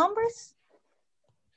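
A woman speaks briefly and close to a microphone.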